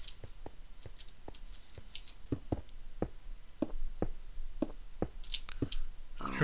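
Footsteps thud on stone at a steady pace.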